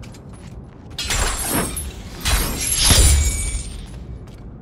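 A heavy blow lands with a loud crash.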